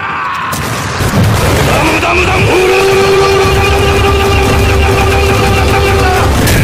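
Rapid punches hammer against metal.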